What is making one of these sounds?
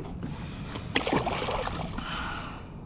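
Water splashes against the side of a kayak.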